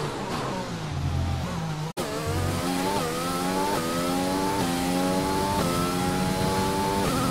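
A racing car engine revs and screams higher through the gears, with a short cut-out at the first shift.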